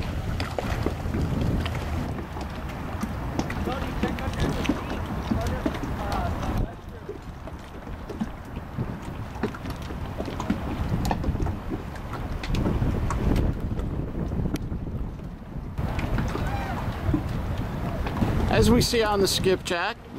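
A boat engine rumbles steadily as a boat cruises past on the water.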